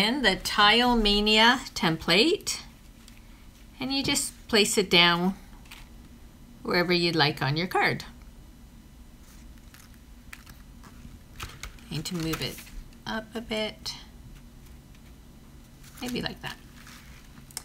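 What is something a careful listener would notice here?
A thin plastic sheet rustles and crinkles as it is handled.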